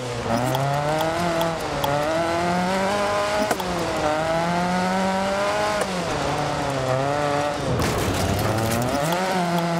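A rally car engine revs hard, rising and dropping in pitch as it shifts gears.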